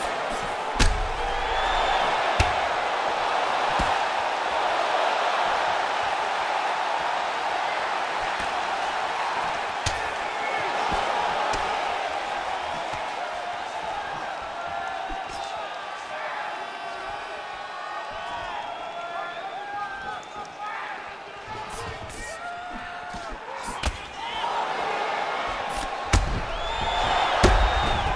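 A crowd roars and cheers steadily.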